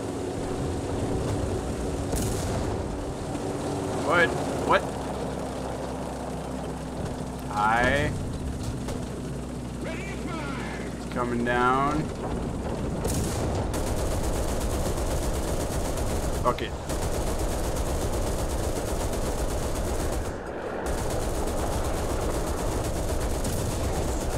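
Distant shells explode with dull booms.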